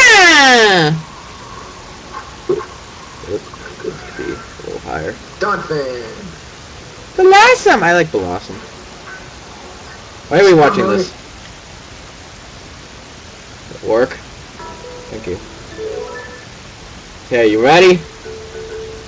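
A game creature lets out short, shrill, warbling cries, again and again.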